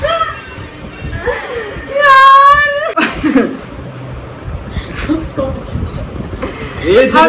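Young women laugh loudly close by.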